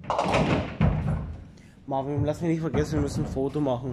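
Bowling pins clatter as a ball strikes them.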